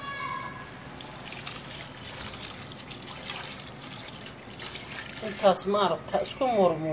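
Water pours into a metal pot and splashes.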